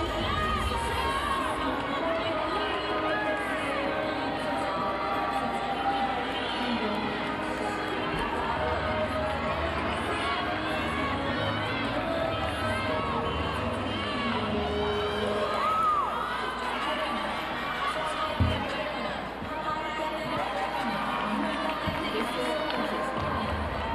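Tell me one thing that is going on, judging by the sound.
A large crowd murmurs and chatters in a big echoing arena.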